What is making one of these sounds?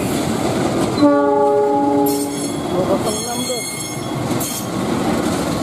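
A diesel locomotive horn blows loudly.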